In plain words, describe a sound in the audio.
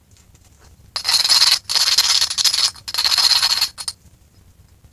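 A hand rasp scrapes rapidly over a piece of wood.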